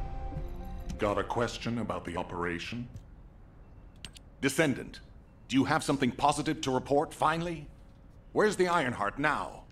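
A man speaks in a firm, deep voice.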